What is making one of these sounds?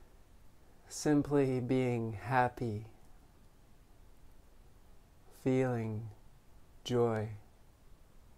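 A man speaks slowly and calmly, close by, in short phrases with long pauses.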